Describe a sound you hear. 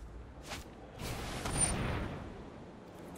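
A magical shimmering whoosh sounds.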